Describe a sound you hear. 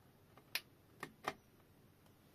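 Hard plastic clicks under a hand.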